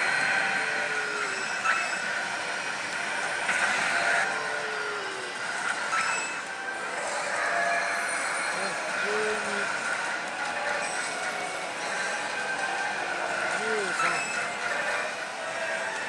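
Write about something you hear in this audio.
A slot machine plays loud, busy electronic music and jingles.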